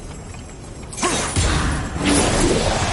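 A blade whooshes through the air.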